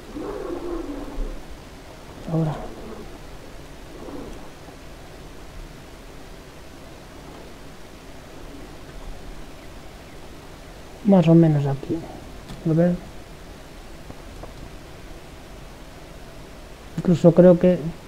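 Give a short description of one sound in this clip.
A man speaks in short bursts into a microphone, close by.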